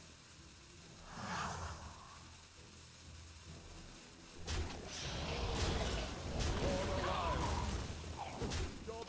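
Magical battle sound effects clash and burst with loud impacts.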